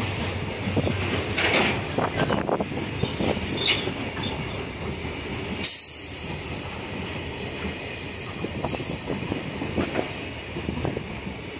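A long freight train rumbles past close by, its wheels clattering and clicking over the rail joints.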